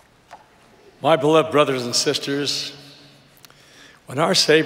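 An elderly man speaks slowly and deliberately into a microphone in a large hall.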